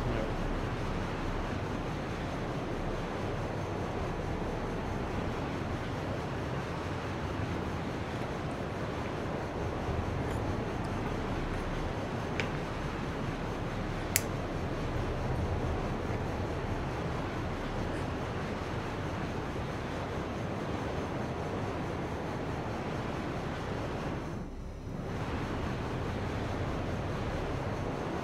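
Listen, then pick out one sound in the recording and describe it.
A spacecraft engine hums steadily in a low rumble.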